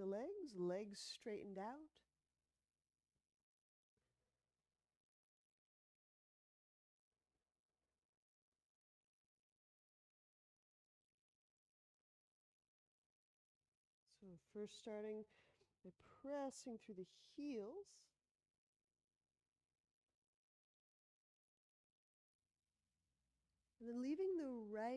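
A woman speaks calmly and clearly, close to a microphone, in short bursts with pauses.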